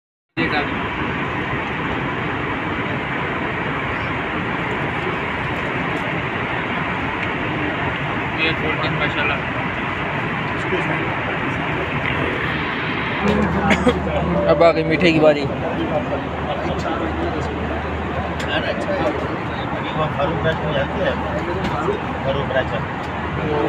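A steady roar of jet engines fills an aircraft cabin.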